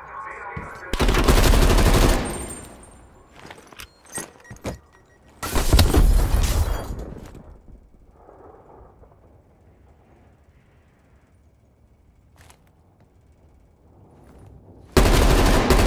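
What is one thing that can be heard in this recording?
Automatic gunfire rattles in loud, short bursts.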